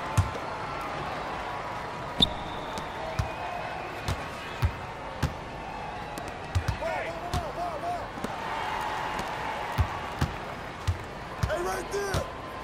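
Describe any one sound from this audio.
A basketball bounces rhythmically on a hard court.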